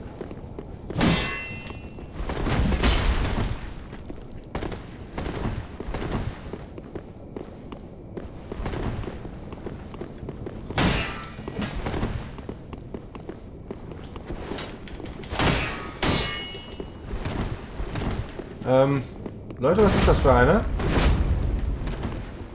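Swords clash and slash with sharp metallic hits.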